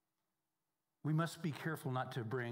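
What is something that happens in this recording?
A man speaks calmly through a microphone in a reverberant hall.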